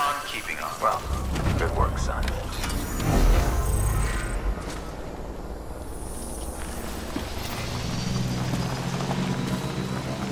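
A motorbike engine starts and hums as it drives over rough ground.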